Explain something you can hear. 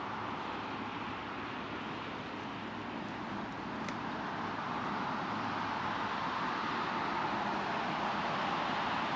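Traffic rushes steadily along a nearby highway.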